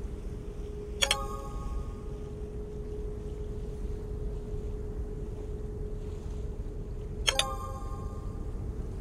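A short bright purchase chime rings twice.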